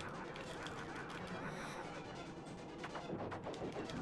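Explosions boom and crackle in a video game.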